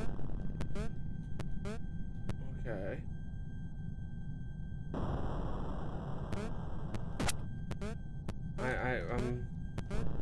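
Short electronic game blips sound as a character jumps.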